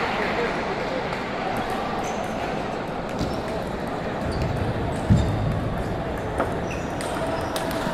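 A ping-pong ball clicks against paddles and the table.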